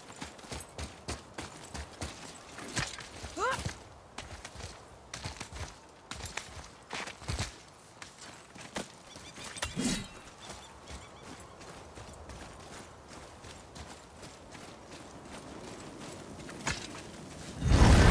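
Heavy footsteps crunch quickly on gravel.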